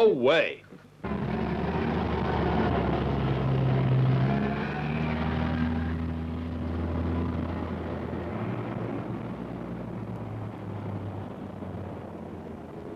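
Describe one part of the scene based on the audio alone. A small car engine hums as the car drives along a street.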